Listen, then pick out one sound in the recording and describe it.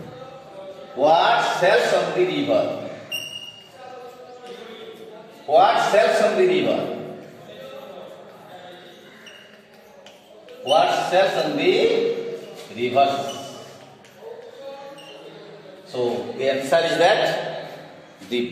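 A middle-aged man speaks loudly and clearly nearby, in bursts with pauses.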